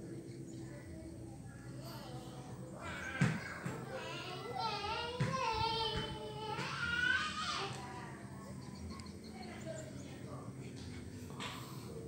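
A baby macaque chews and sucks on a banana.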